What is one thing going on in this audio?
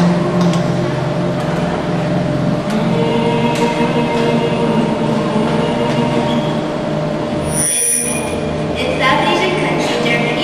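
A young woman sings in a large echoing hall.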